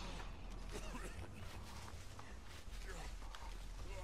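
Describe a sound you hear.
Tall dry stalks rustle as someone pushes through them.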